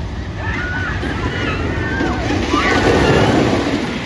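A roller coaster train rumbles and clatters along its track.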